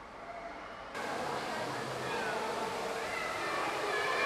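Voices echo in a large indoor hall.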